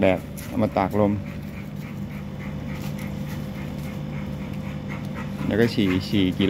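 A dog's paws rustle through dry leaves on the ground.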